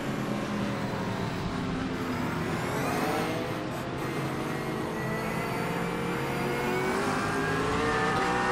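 A racing car engine revs up and down as gears shift.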